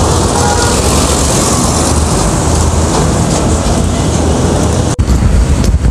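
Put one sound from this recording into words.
A heavy truck engine rumbles loudly close by as it passes.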